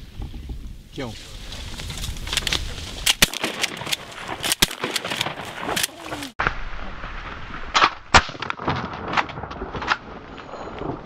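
Geese flap their wings.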